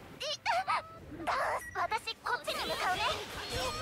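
Crackling magical energy blasts burst in quick succession.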